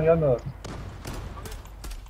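A rifle fires a few quick shots.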